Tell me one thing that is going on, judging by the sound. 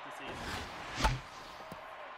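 A wooden bat cracks against a baseball.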